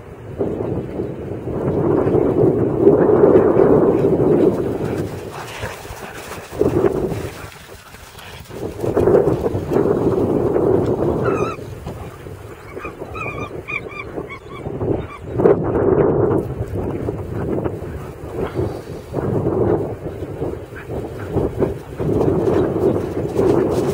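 Dogs' paws thud and crunch across snow as they run.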